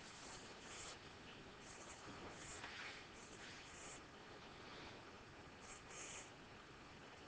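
A felt-tip marker squeaks and scratches faintly on paper.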